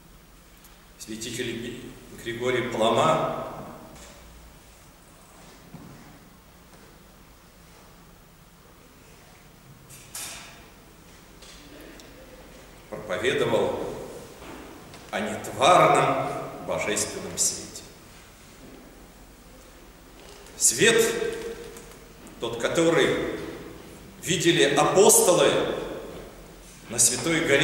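An elderly man speaks calmly and slowly in bursts with long pauses.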